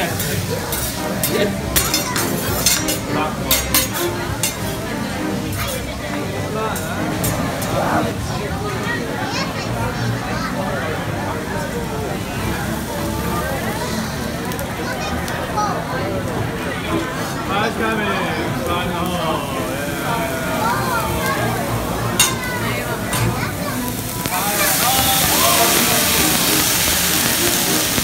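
Men, women and children chat and laugh nearby.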